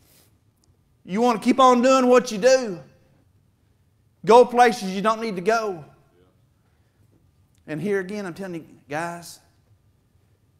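A middle-aged man preaches with animation through a microphone in an echoing hall, pausing between phrases.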